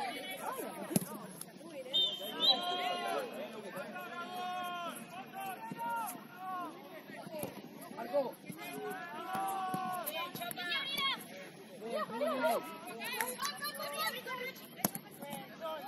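A football thuds off a foot.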